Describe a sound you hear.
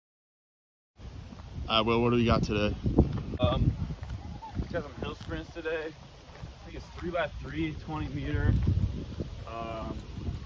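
A young man talks calmly close by, outdoors.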